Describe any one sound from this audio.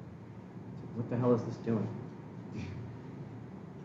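A young man speaks briefly and calmly.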